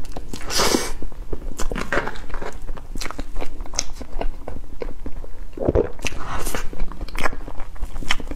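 A fork scrapes through soft cake and cream.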